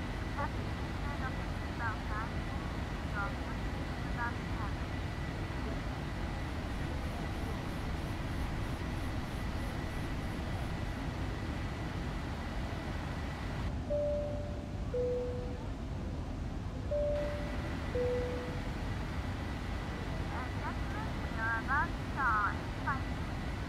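Jet engines drone steadily with a low rumble.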